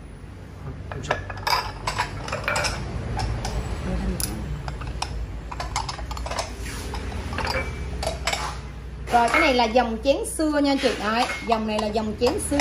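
Ceramic bowls clink as they are set down on a stone surface.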